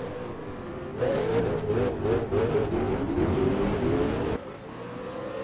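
Other V8 race car engines roar close by.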